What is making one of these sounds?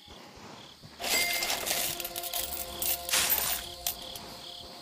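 Coins jingle brightly.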